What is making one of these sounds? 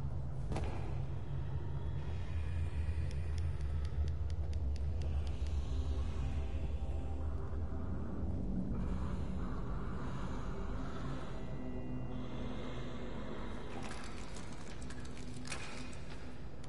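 Footsteps pad softly on a hard floor.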